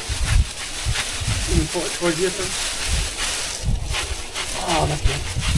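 Dry branches rustle and crackle as they are handled.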